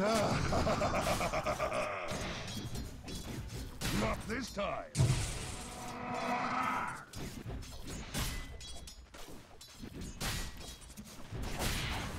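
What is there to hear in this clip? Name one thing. Magic blasts and blows clash in a game battle.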